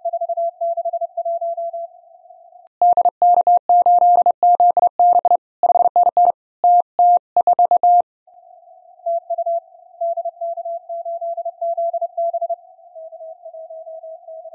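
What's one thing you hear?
Morse code beeps steadily from a radio receiver, louder and faster in the middle.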